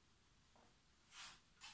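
A sheet of paper rustles as a page is turned.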